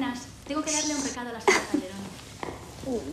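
A woman exclaims with joy nearby.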